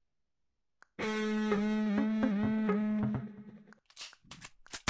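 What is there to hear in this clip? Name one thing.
A synthesised guitar plays a short run of notes.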